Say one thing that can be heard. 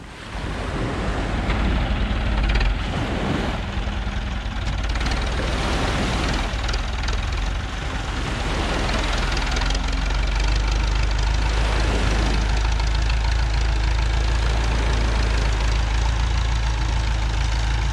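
Small waves wash onto the sand.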